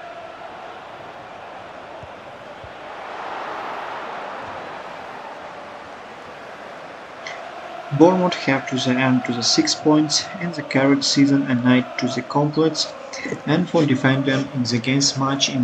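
A stadium crowd roars softly in the background.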